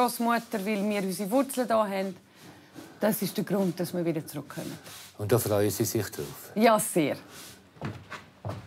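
A middle-aged woman speaks calmly close by.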